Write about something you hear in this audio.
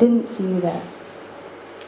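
A person speaks briefly into a microphone.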